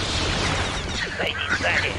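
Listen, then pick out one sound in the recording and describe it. A blaster bolt fires with a sharp zap.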